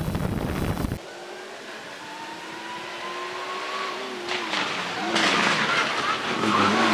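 A rally car's engine revs hard as it approaches and roars past.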